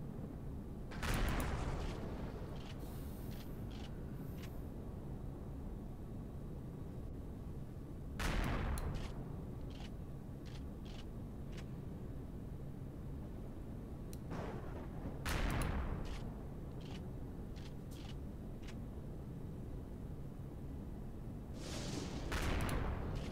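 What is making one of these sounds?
A heavy cannon fires booming shots at regular intervals.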